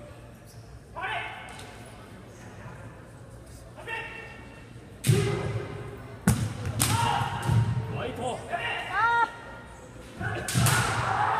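Men shout sharp, loud cries in a large echoing hall.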